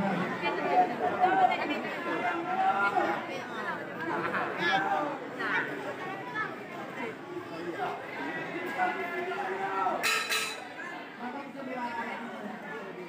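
A crowd of people talks and chatters nearby.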